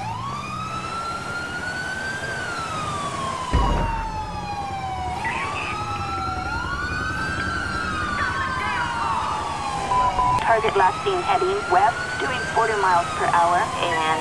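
A police siren wails, rising and falling in pitch.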